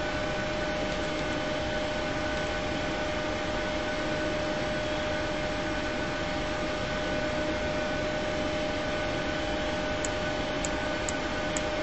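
A steady electrical hum and whine drones inside an aircraft.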